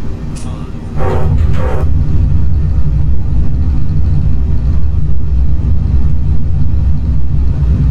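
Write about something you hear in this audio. Tyres touch down on a runway and rumble loudly.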